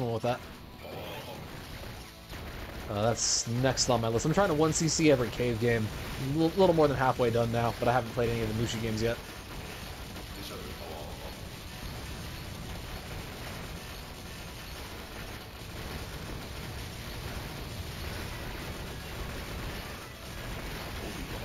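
Explosions burst and crackle.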